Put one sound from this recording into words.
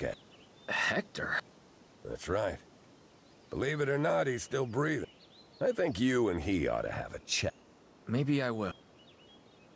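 A middle-aged man speaks calmly and gravely, close by.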